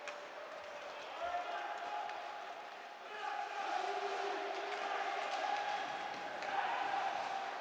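A hockey stick clacks against a puck.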